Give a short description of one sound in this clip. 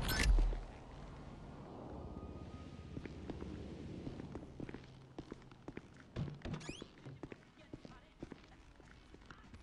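Footsteps tap on hard floors indoors.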